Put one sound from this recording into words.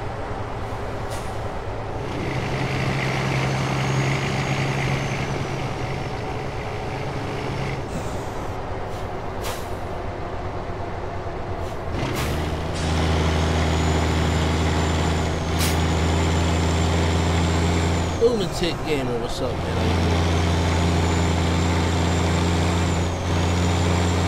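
Tyres roll over a road with a low rumble.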